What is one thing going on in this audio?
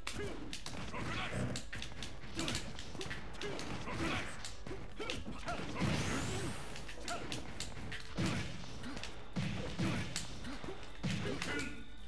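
Punches, kicks and blasts from a fighting game thud and crackle in quick bursts.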